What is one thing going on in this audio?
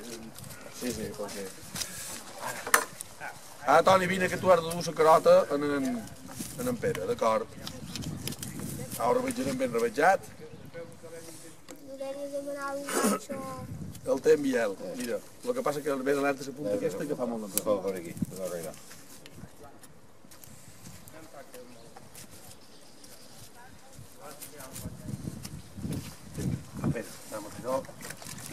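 Men talk nearby in a lively outdoor group.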